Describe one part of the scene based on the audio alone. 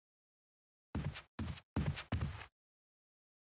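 Footsteps thud along a hallway floor.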